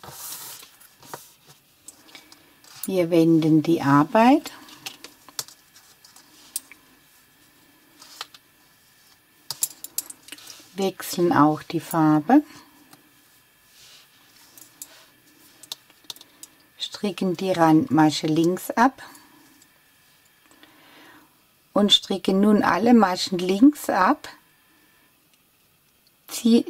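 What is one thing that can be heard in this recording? Metal knitting needles click against each other.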